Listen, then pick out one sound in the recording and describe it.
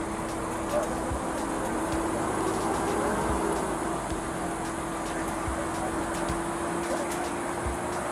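A man talks with another man nearby.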